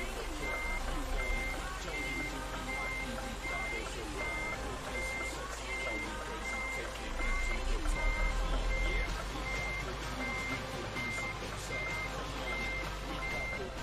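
A truck's reversing alarm beeps in a steady, even rhythm.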